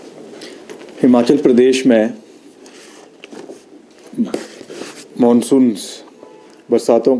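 A young man speaks calmly into a microphone, close by.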